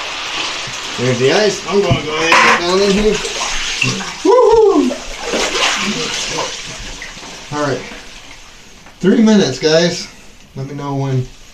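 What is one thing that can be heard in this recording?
A young man gasps and shouts in shock from the cold water, close by.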